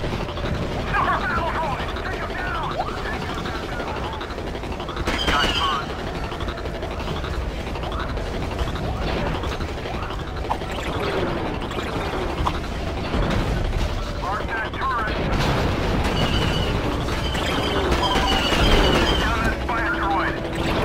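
Gunfire and explosions rumble through a battle.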